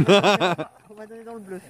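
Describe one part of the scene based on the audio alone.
A woman laughs loudly close by.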